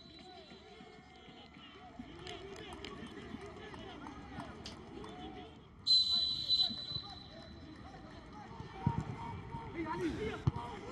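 Players shout across an open outdoor pitch.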